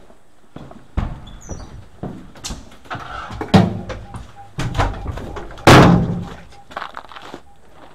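A heavy door rattles and bangs open.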